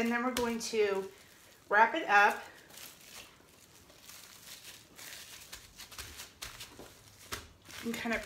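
Plastic wrap crinkles as it is handled.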